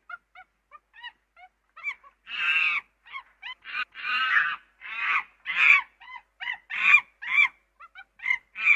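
A chimpanzee hoots in short rising calls that build into loud screams.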